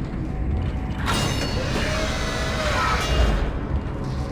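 A heavy mechanical door slides open with a whirring hiss.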